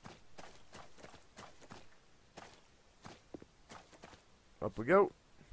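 Footsteps tread steadily over grass.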